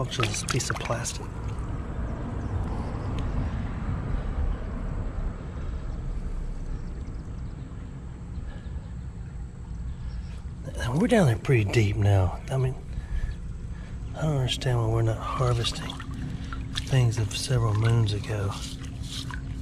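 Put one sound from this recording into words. Shallow water trickles and gurgles over stones.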